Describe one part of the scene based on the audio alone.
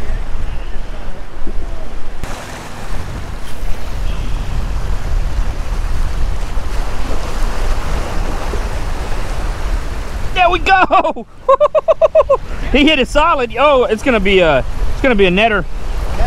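Waves splash against rocks.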